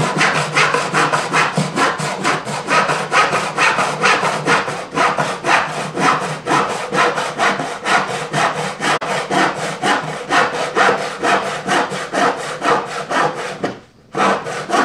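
A hand tool scrapes wood in quick, steady strokes.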